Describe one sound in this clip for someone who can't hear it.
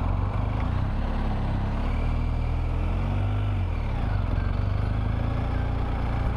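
A motorcycle engine rumbles steadily, its pitch rising and falling.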